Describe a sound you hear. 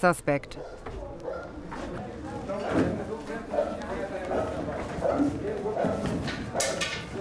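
Several men talk quietly in the background.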